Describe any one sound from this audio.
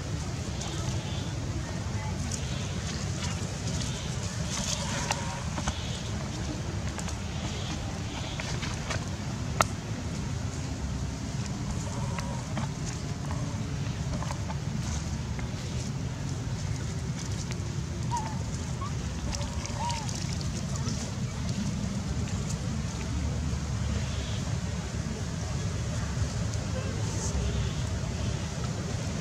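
Dry leaves rustle as small monkeys scuffle on the ground.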